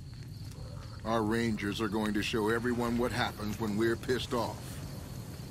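A man speaks in a deep voice, close by.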